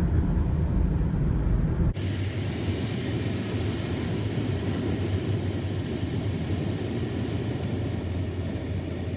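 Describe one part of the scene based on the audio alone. Tyres rumble steadily on the road, heard from inside a moving car.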